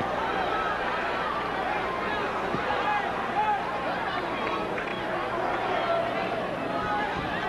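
A large crowd murmurs and cheers steadily in a big arena.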